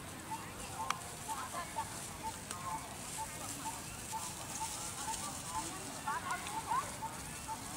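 A baby monkey squeaks in short, high cries.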